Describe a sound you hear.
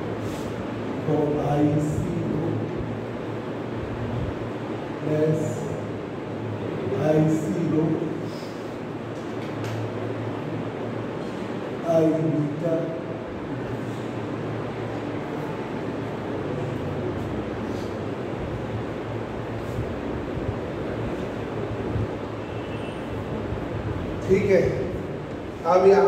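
A man speaks calmly, explaining, with pauses.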